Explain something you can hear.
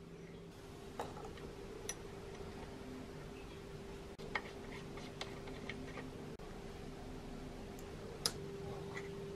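A small metal latch clicks as fingers swivel it.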